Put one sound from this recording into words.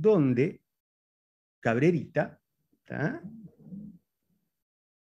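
A man speaks calmly in short phrases through an online call.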